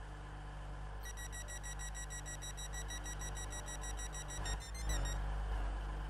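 A door warning chime beeps over and over.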